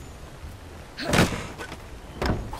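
A wooden chest creaks open with a loud thud.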